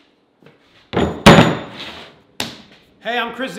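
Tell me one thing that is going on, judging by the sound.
A heavy metal vise thuds down onto a wooden bench.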